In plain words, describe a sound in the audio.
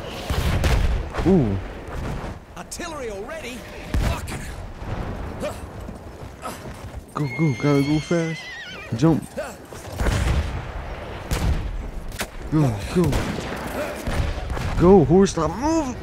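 A horse gallops with heavy hoofbeats on hard ground.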